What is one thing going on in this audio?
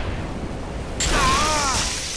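A crackling electric burst flares up with a warbling whine.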